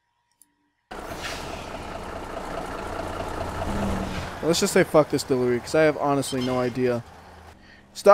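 A truck engine rumbles as the truck drives.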